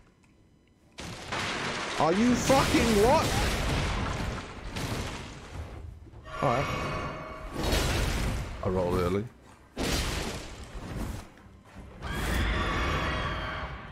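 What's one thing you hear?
Heavy blows thud and clang in a fight.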